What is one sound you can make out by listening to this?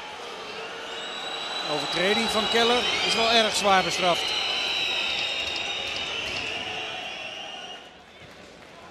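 A large stadium crowd whistles and jeers loudly, then dies down.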